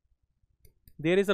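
A man speaks close to a microphone, lecturing calmly.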